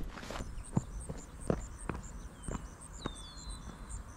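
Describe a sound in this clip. Footsteps crunch on dry rocky ground.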